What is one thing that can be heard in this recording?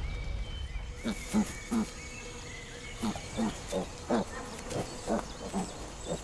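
A piglet grunts softly in short bursts.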